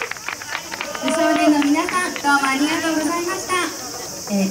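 A group of young girls chant loudly together.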